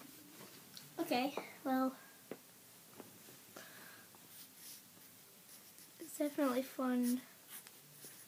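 A young girl speaks close by in short, drawn-out bursts.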